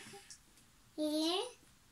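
A young child speaks in a high voice up close.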